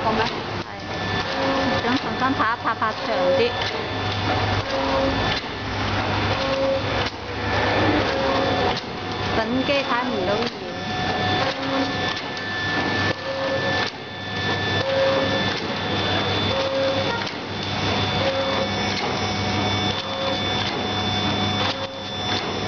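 A packaging machine's sealer clicks and thumps at regular intervals.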